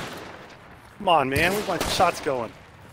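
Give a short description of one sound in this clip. A man speaks with animation through a close microphone.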